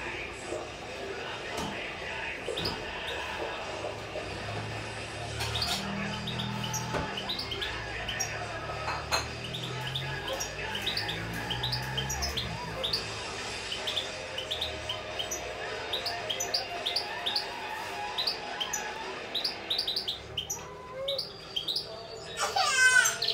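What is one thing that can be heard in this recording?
A small caged bird chirps and sings in quick bright notes.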